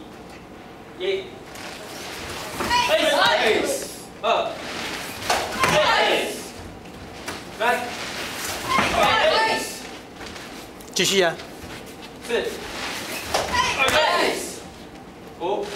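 A group of children and adults shout together in short, regular bursts.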